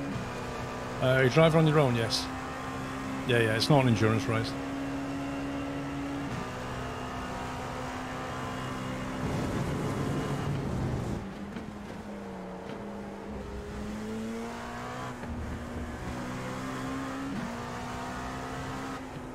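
A racing car engine hums steadily and revs up and down with gear changes.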